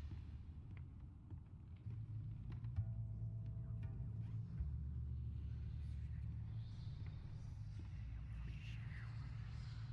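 Footsteps thud slowly on wooden floorboards.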